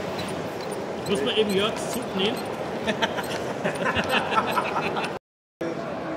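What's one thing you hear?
A model train clicks over track joints.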